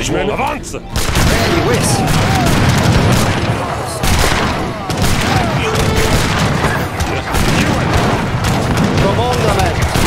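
Muskets fire in rapid, crackling volleys.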